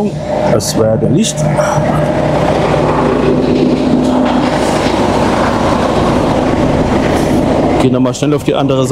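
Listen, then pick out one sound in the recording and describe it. A truck engine idles with a low steady rumble in an echoing hall.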